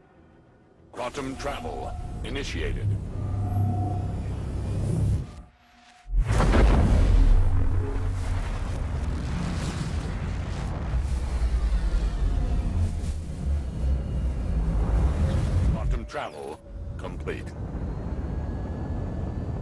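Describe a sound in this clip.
A spacecraft engine roars with a deep, rumbling thrust.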